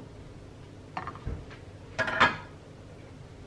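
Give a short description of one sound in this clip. A plate is set down on a counter with a knock.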